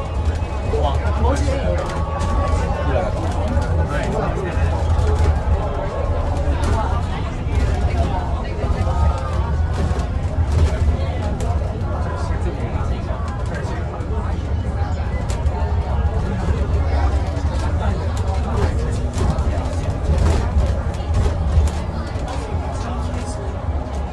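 A bus engine rumbles steadily from inside as the bus drives along.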